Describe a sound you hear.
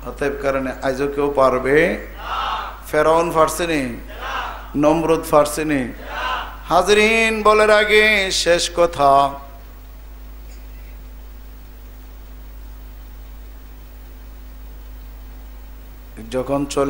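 A middle-aged man preaches with fervour into a microphone, heard through a loudspeaker.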